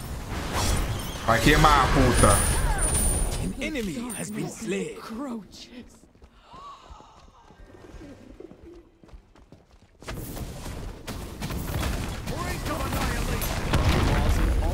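Game spells and attacks crackle and boom.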